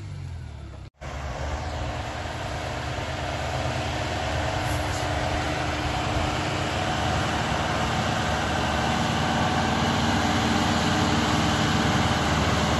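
A tractor engine drones steadily as it pulls a heavy trailer across a field.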